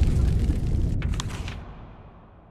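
A sheet of paper rustles as it unfolds.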